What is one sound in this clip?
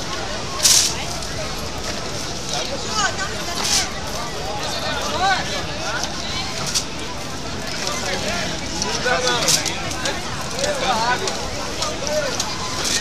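A man talks animatedly close by.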